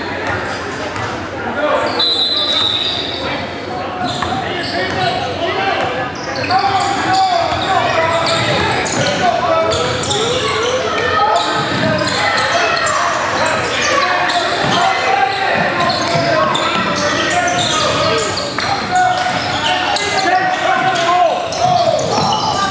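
A basketball bounces on a hard floor, echoing through a large hall.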